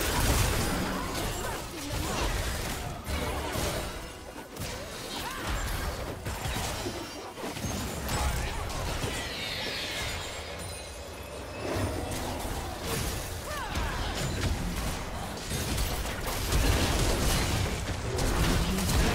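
Fantasy battle sound effects whoosh, zap and crackle in quick bursts.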